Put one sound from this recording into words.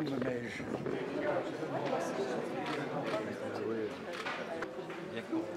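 A crowd murmurs and chatters in an echoing room.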